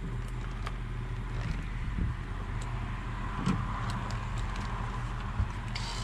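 Wires rustle and tap as a hand handles them.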